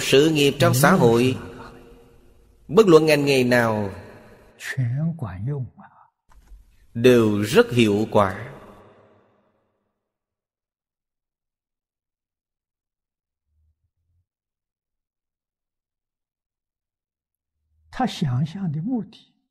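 An elderly man speaks calmly and warmly into a close microphone, with long pauses.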